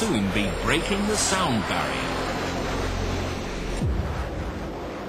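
A jet engine roars loudly overhead.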